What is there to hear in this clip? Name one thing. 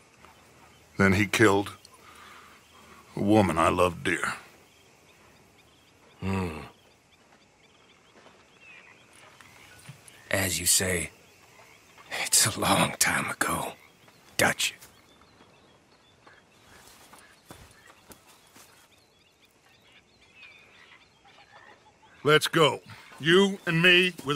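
A middle-aged man speaks slowly and gravely, close by.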